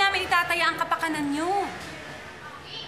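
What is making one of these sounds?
A young woman speaks urgently, close by.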